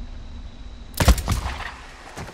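A gun fires a single loud shot nearby.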